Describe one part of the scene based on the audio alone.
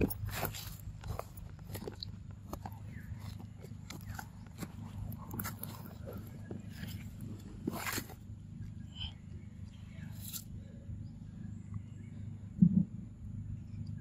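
A monkey chews and smacks wetly on soft fruit close by.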